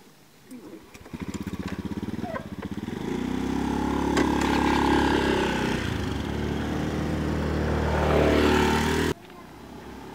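A motorcycle engine starts and revs loudly, then cuts off suddenly.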